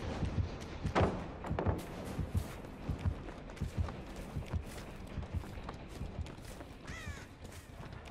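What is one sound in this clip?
Footsteps run quickly over snowy ground.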